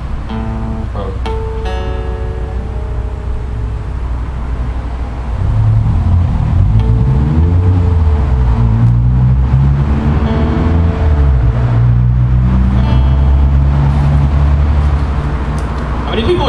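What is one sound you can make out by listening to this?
An acoustic guitar is strummed and picked close by.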